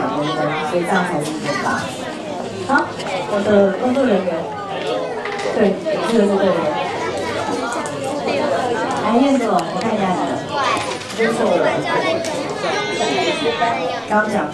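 Children and adults chatter.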